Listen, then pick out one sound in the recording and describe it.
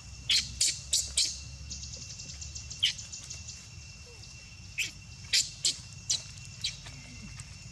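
A baby macaque squeals in short, shrill bursts.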